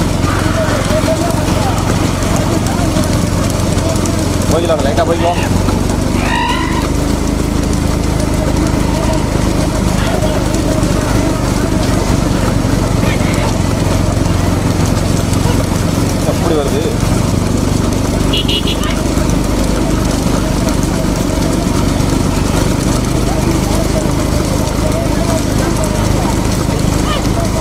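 Hooves clatter on a paved road as bullock carts race past.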